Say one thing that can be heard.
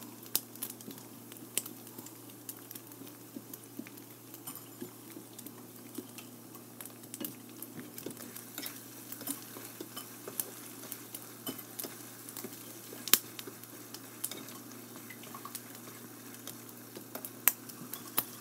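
Food sizzles and crackles in a frying pan.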